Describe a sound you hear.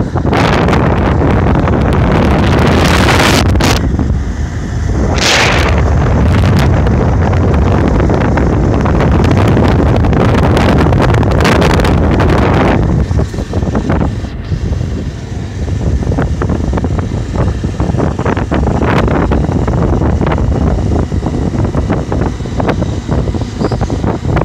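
A motorbike engine hums steadily as it rides along a road.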